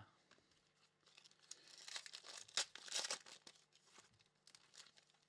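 Foil wrappers crinkle and tear as a pack is opened.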